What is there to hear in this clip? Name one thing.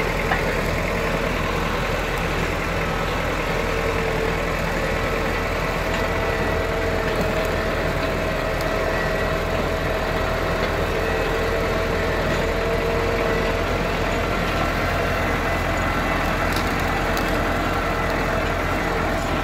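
A box blade scrapes and churns through soil.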